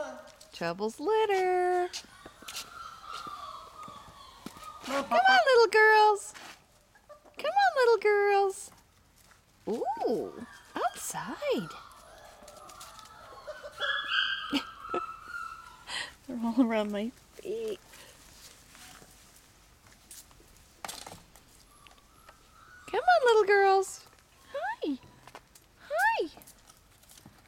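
Puppies whine and yelp in short, high, wavering cries, on and off.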